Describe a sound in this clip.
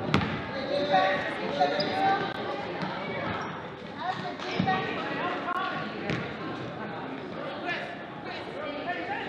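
A basketball bounces on a wooden gym floor.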